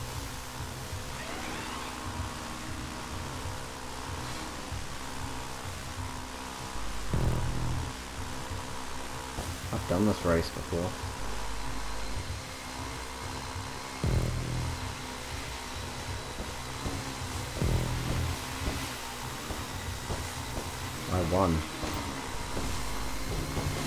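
Water sprays and splashes behind a jet ski.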